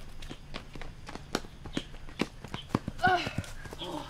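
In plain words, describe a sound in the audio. Footsteps run on a paved path.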